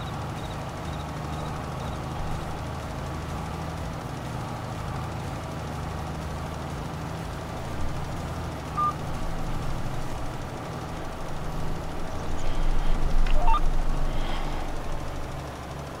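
A tractor engine hums steadily as it pulls a machine across a field.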